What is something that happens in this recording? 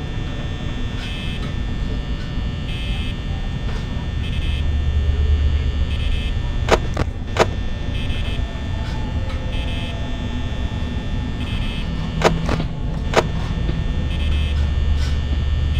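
A desk fan whirs.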